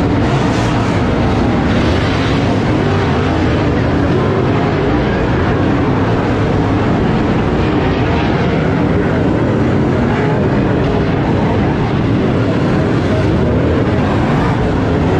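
Loud race car engines roar and rumble around a dirt track.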